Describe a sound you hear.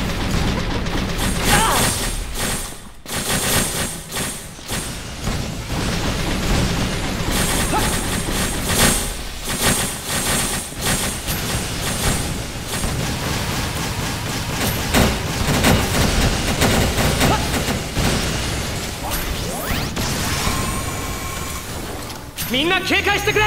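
Guns fire in rapid bursts with loud blasts.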